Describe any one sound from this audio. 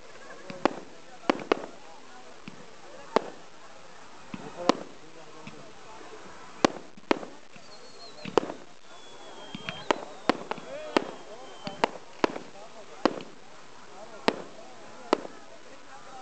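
Fireworks burst with sharp bangs outdoors, again and again.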